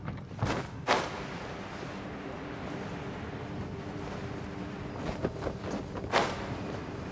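Wind rushes steadily during a glide through the air.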